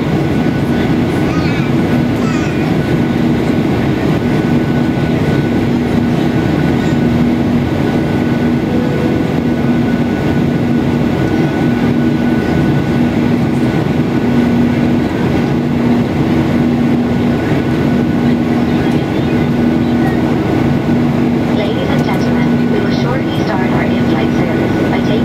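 Jet engines roar steadily with a low droning hum inside an airliner cabin.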